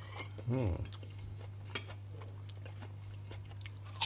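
Crisp crackers crunch as a hand breaks them.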